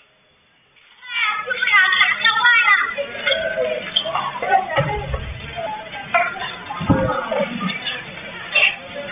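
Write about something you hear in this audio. Men shout urgently nearby.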